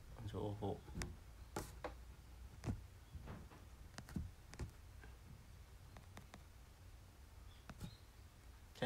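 Piano keys knock softly.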